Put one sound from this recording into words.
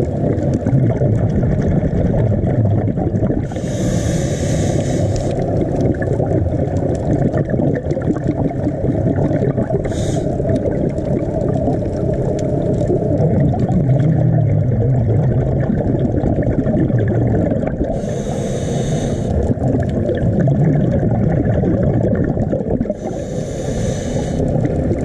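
A low, muffled underwater rumble goes on throughout.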